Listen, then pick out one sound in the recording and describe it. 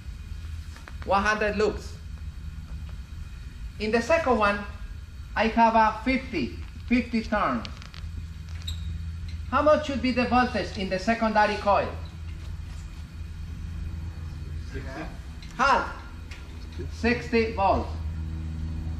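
A man speaks calmly in short bursts.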